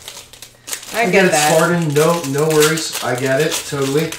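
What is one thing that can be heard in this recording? A foil wrapper crinkles as it is torn open.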